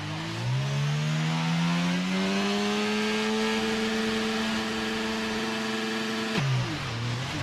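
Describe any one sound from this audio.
A Formula 1 car's V6 turbo hybrid engine revs high and holds its pitch on the starting grid.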